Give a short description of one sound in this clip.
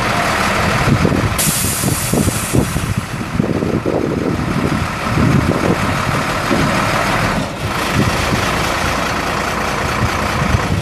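A large truck engine idles with a low rumble.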